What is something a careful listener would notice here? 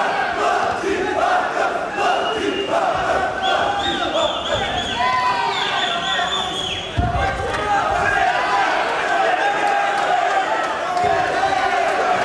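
A crowd shouts and cheers loudly in a large echoing hall.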